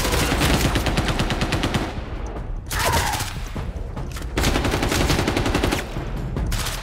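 Rapid gunfire rattles in loud bursts inside an echoing hall.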